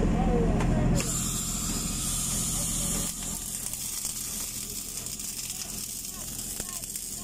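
An electric welding arc crackles and hisses steadily.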